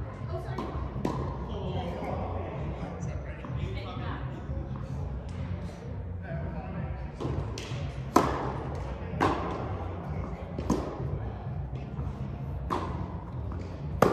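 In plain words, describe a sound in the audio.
Tennis balls pop off rackets in a large echoing hall.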